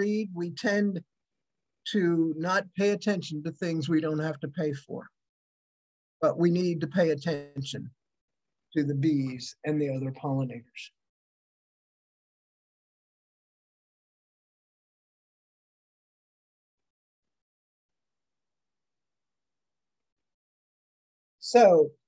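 An elderly man speaks calmly through a microphone, reading out.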